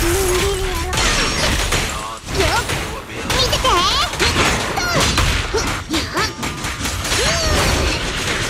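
Weapons clash and strike with loud impacts.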